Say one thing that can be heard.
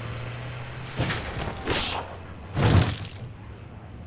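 Heavy thuds strike as a truck hits bodies.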